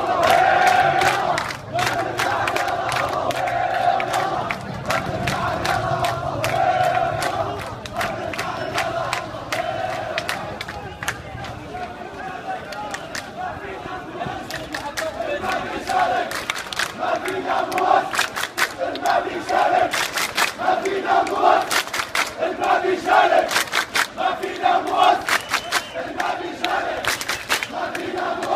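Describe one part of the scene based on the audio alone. Men in a crowd clap their hands in time.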